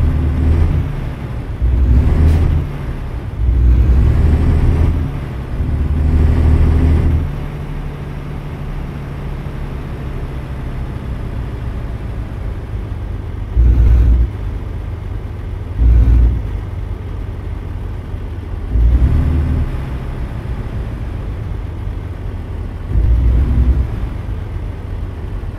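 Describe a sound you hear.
A truck engine rumbles steadily, rising and falling in bursts.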